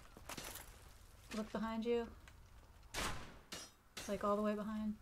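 Armored footsteps clank on stone.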